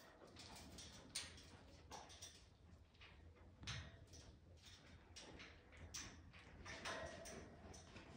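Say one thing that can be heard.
A parrot's claws and beak click on metal cage bars.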